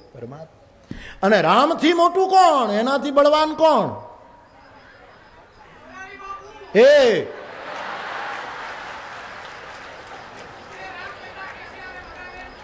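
An elderly man sings loudly through a microphone.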